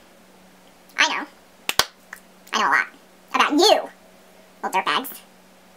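A young woman speaks with animation close to a microphone, in short bursts.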